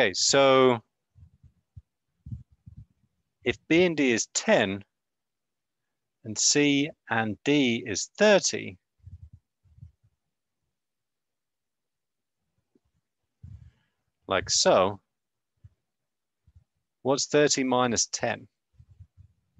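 A young man speaks calmly over an online call, in short bursts with pauses.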